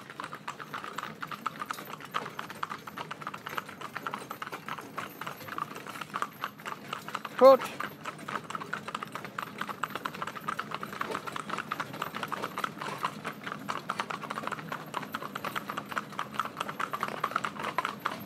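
Horses' hooves clip-clop briskly on a paved road.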